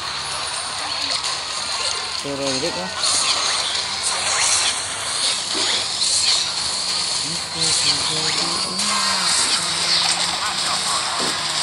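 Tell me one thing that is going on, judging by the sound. Game battle effects clash, crackle and thud over a busy mix of sounds.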